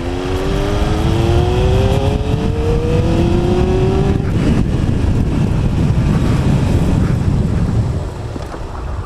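Wind rumbles past while riding.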